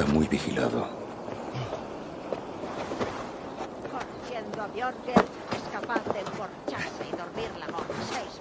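Hands and feet knock against a wooden scaffold while climbing.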